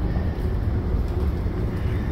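A pickup truck drives by.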